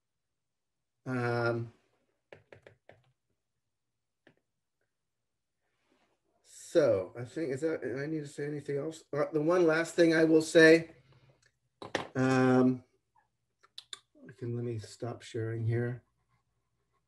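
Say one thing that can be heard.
A middle-aged man speaks with animation over an online call, in short bursts with pauses.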